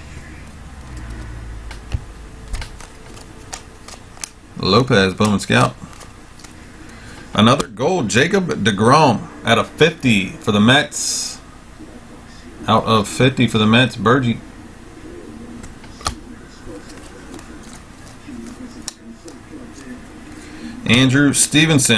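Trading cards shuffle and slide against each other in hands.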